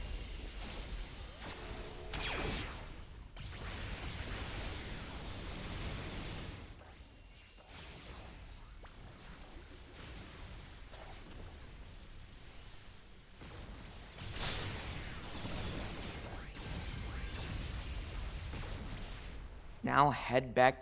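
Magic blasts whoosh and crackle in bursts.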